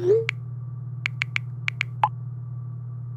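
A phone keyboard clicks under typing thumbs.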